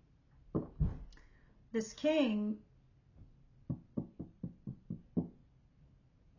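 Cards tap lightly on a table.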